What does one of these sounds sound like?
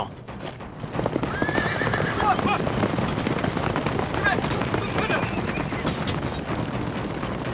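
Horses gallop over hard ground.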